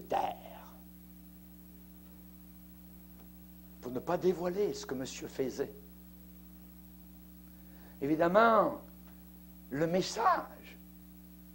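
A middle-aged man preaches with animation through a microphone, in short bursts with pauses.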